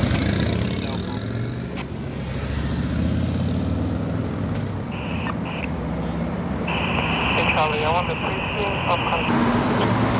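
Police motorcycles pull away with rising engine noise.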